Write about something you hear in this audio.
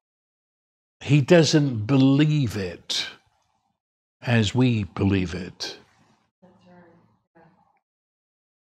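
An elderly man speaks calmly and thoughtfully into a nearby microphone.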